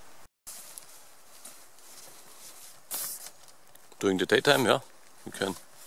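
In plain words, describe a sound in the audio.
Fabric rustles as a net is handled.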